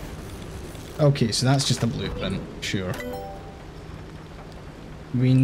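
A man talks casually and close to a microphone.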